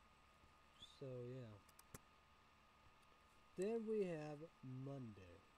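A young man speaks calmly and close, in short phrases, with pauses in between.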